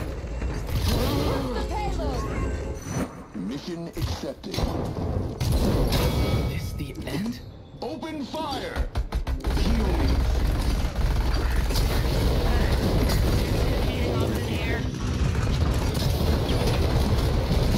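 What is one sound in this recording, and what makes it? Loud energy blasts whoosh and burst.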